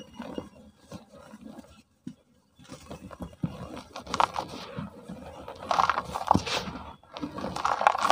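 Fine dust and sand pour and trickle softly.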